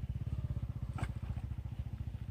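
A bait splashes into the water.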